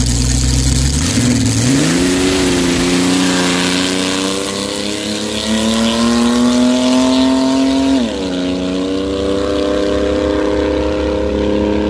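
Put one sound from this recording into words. A dragster engine roars and climbs in pitch as the car speeds away.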